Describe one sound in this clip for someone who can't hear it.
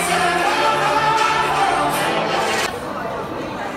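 A crowd of people chatter loudly nearby.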